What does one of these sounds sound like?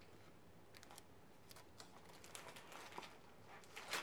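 A book's cover flips open with a soft paper rustle.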